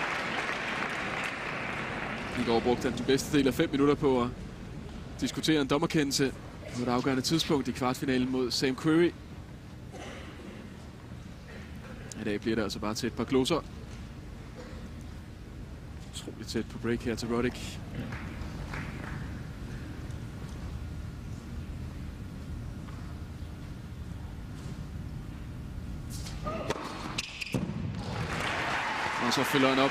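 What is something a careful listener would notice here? A crowd applauds in a large arena.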